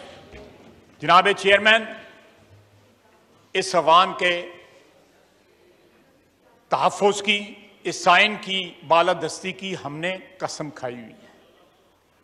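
An older man speaks forcefully into a microphone in a large hall, pausing between phrases.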